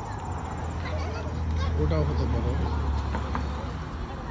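A car drives past on a nearby road outdoors.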